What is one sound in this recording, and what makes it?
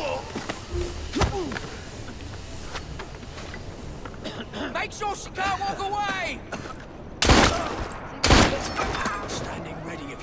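Heavy punches thud during a brawl.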